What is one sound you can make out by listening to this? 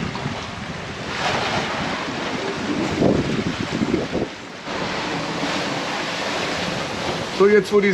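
Wind blows hard over open water.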